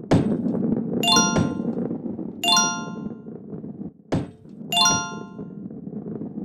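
Bright chimes ring out as coins are picked up.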